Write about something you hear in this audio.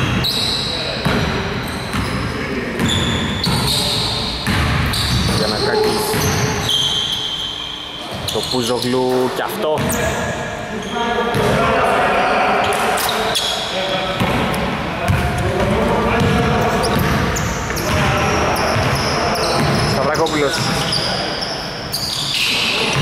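Sneakers squeak on a hardwood court in an echoing gym.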